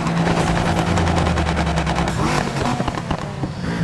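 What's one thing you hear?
A car exhaust backfires with a loud pop.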